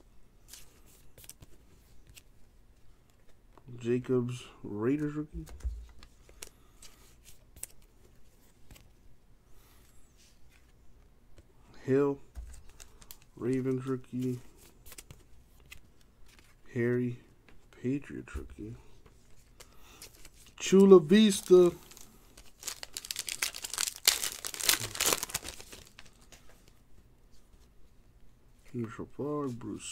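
Trading cards slide and flick against each other.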